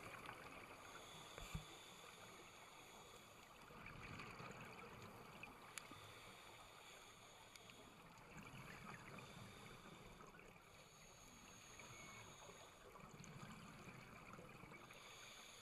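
Air bubbles gurgle and rumble underwater in slow, regular bursts.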